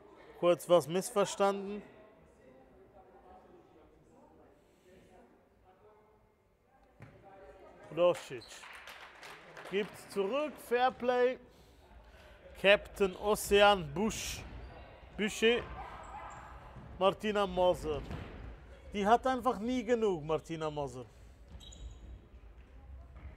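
A ball is kicked with dull thuds in a large echoing hall.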